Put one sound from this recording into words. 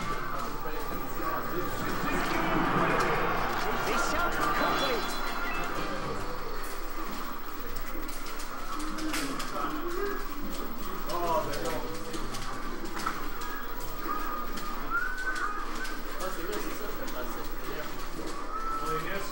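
Young men chatter and talk over each other in a large room.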